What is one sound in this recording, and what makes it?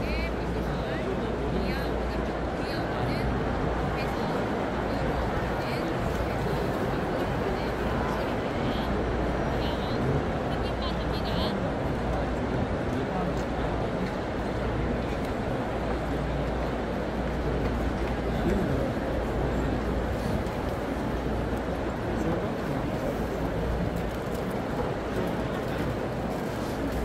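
A huge crowd murmurs and chatters in a large open stadium.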